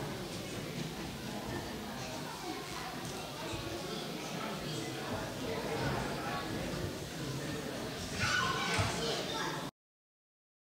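A man talks in a large echoing hall.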